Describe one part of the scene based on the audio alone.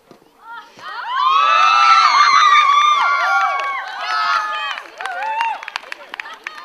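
Children shout and cheer loudly outdoors.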